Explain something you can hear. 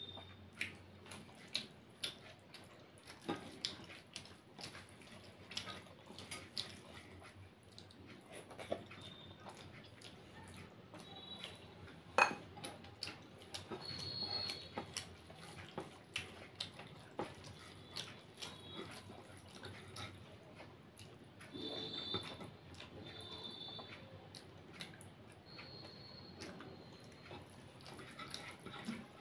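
A woman chews food close to a microphone with wet smacking sounds.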